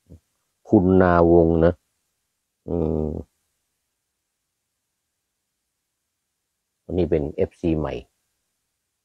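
An elderly man speaks calmly, close by, in short bursts.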